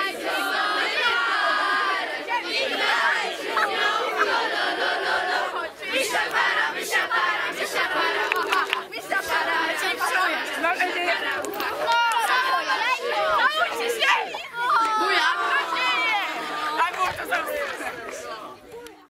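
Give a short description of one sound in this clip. A group of young girls chatter, shout and laugh close by, outdoors.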